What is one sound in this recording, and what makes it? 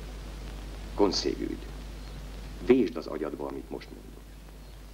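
A middle-aged man speaks a few short words calmly, close by.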